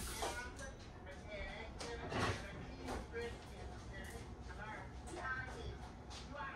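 An elderly woman talks quietly close by.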